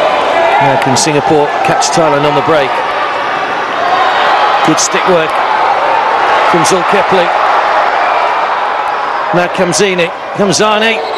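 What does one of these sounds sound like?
A hockey stick strikes a ball with sharp clacks.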